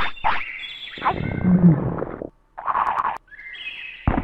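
A cartoon creature munches noisily on food.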